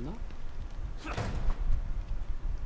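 A heavy metal door swings open.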